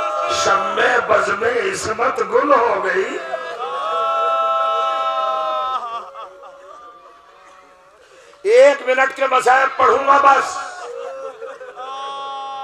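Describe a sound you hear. A man speaks forcefully into a microphone, his voice rising into a long chanted wail, heard through a loudspeaker.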